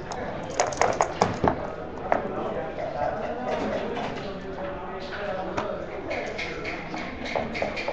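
Game pieces click and clack against a wooden board.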